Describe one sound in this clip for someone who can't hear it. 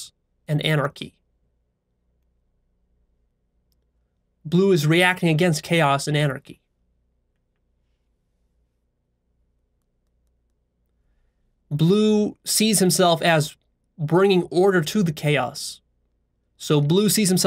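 A man speaks calmly and closely into a microphone, with long pauses.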